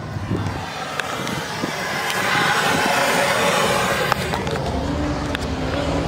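A gas torch hisses with a steady roaring flame.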